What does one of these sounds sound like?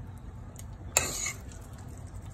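A metal spoon scrapes against a steel pot.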